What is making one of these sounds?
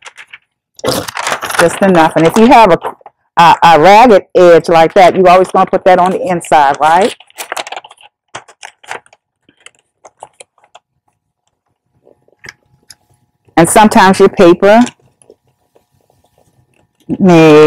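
Wrapping paper crinkles and rustles as it is folded.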